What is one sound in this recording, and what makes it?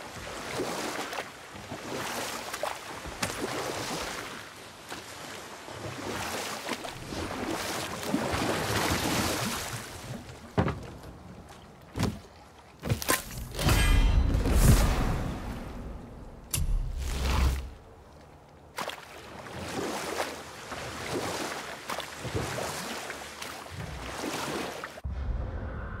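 Water laps against a wooden boat.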